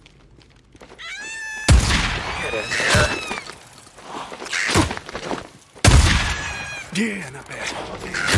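Crows caw harshly.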